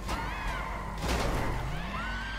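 Two cars crash into each other with a loud thud.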